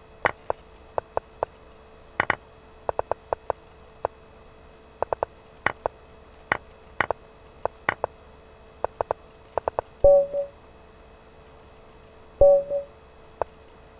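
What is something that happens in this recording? Mouse clicks and game piece sounds tap quickly and unevenly.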